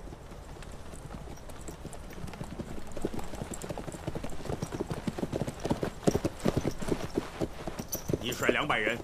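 Horses gallop over the ground.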